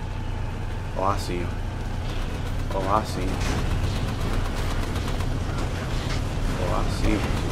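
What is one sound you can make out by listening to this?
A young man speaks with animation into a headset microphone.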